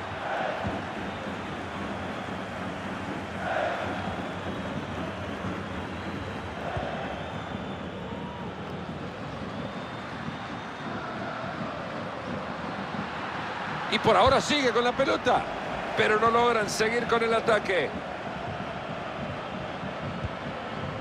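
A stadium crowd roars and chants steadily throughout.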